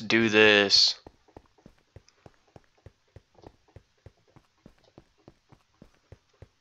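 Footsteps tap steadily on stone steps.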